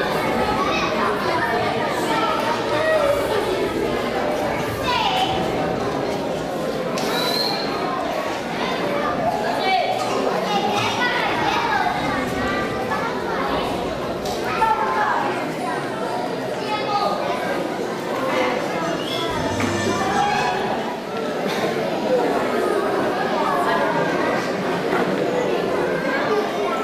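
Children's voices chatter and call out in a large echoing hall.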